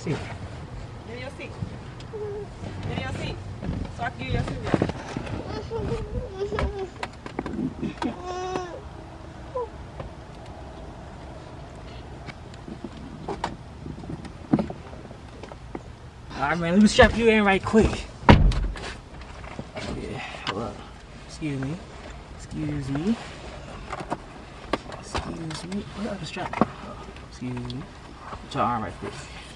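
A toddler babbles and chatters.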